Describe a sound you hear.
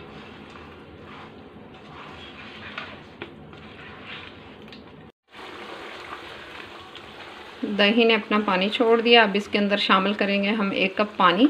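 A spatula scrapes and stirs against a pan.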